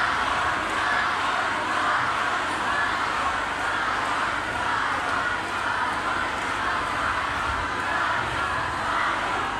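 Loud music plays through a big sound system.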